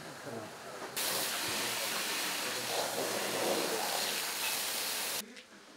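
A hose sprays a loud, steady hissing jet of water.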